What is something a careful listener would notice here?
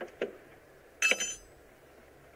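A car boot lid clicks open.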